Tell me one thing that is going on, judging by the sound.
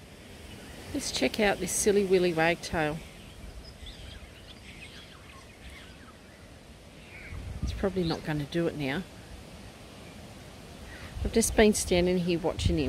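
A small bird calls repeatedly close by.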